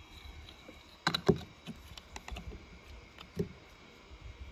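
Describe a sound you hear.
Plastic toy wheels tap against a plastic tub.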